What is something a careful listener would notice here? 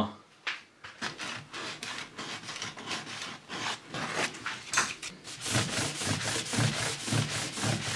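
Sandpaper rubs back and forth over wood in quick strokes.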